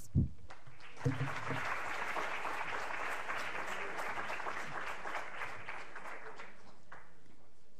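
An audience applauds in a large hall, heard through an online call.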